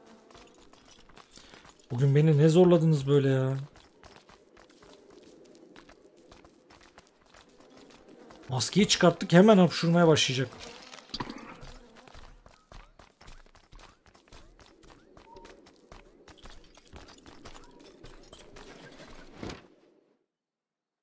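Footsteps tap lightly on a hard path.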